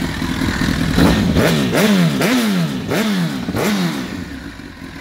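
A motorcycle engine revs sharply several times, each rev rising and falling quickly.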